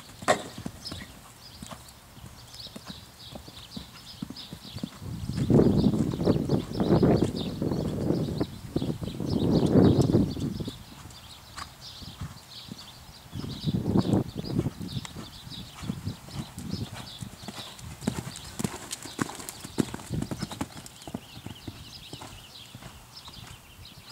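A horse's hooves thud on soft dirt at a canter.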